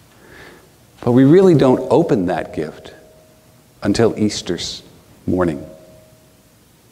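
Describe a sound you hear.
An older man speaks calmly and clearly in a room with a slight echo.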